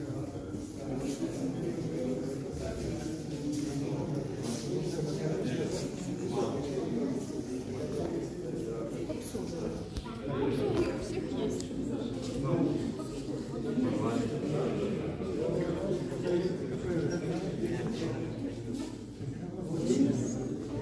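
A crowd of adults chatters in a large echoing hall.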